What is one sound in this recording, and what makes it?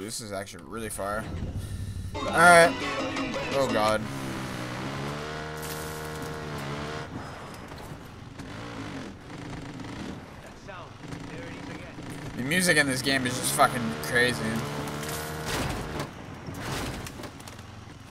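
A quad bike engine hums and revs.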